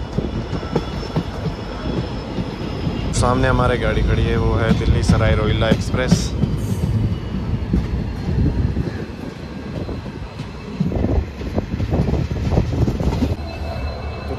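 A train rumbles past close by on the tracks.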